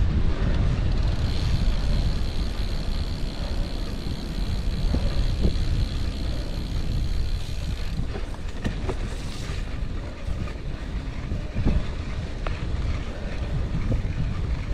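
Bicycle tyres crunch and rumble over a gravel track.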